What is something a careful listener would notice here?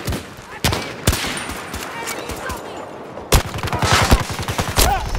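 Rifle shots crack sharply, one at a time.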